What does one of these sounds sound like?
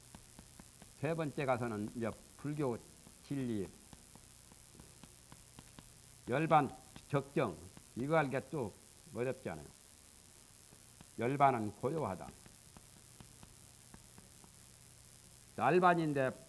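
A man speaks calmly in short phrases into a nearby microphone.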